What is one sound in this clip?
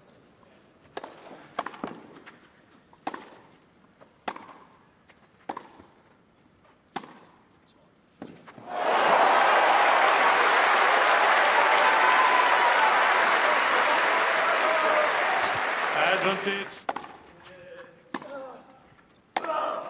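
A tennis ball is struck back and forth with sharp pops of rackets.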